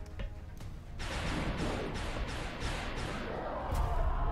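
A heavy gun fires in rapid bursts.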